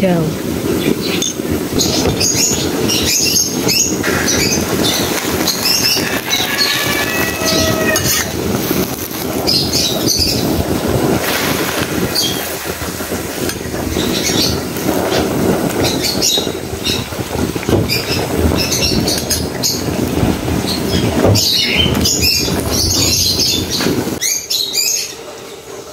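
Water boils and bubbles in a pan.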